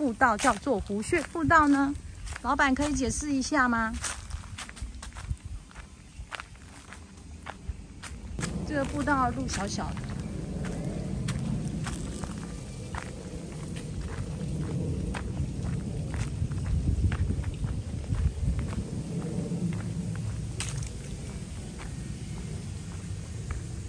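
Footsteps tap along a hard path outdoors.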